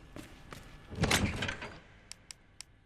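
A heavy metal chest lid creaks open with a loud thud.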